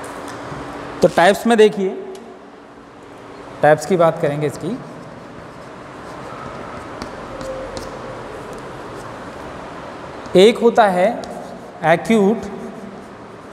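A young man speaks in short bursts through a clip-on microphone.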